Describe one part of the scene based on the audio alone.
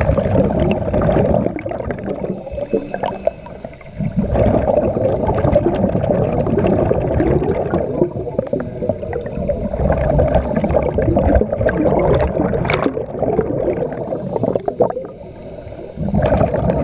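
Scuba bubbles gurgle and rumble loudly underwater.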